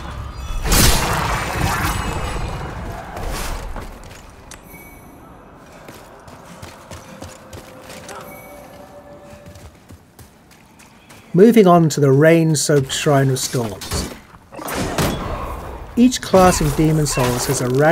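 A sword slashes and strikes with heavy blows.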